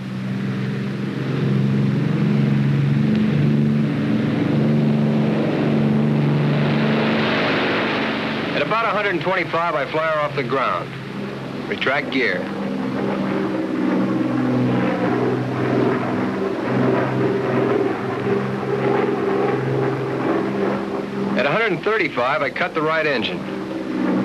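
Propeller aircraft engines drone loudly.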